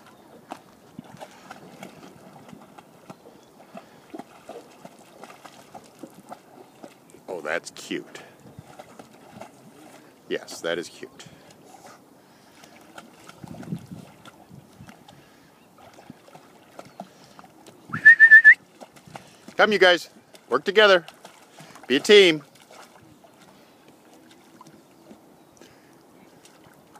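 A dog paddles through calm water with soft splashes.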